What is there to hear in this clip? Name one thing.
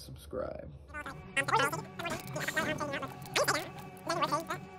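Two men talk with animation through a microphone.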